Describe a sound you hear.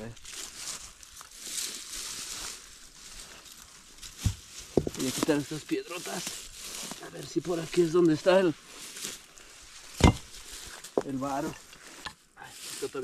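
Grass and leaves rustle under footsteps.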